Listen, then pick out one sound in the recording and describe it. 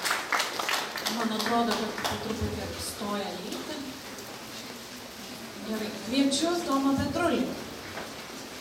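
A young woman speaks into a microphone in a friendly voice.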